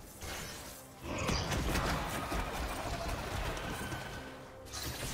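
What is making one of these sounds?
Video game spell effects whoosh and crackle in quick bursts.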